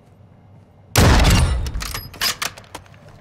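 A rifle fires a single loud, booming shot that echoes away.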